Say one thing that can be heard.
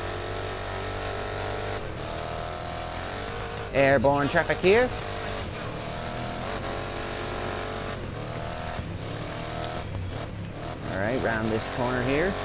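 Racing truck engines roar steadily at high revs.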